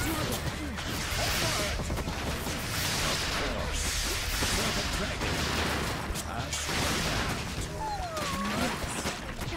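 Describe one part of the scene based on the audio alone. Swords clash and clang in a noisy battle.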